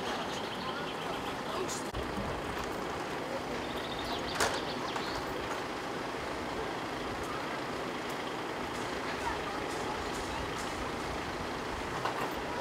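A truck engine idles steadily nearby.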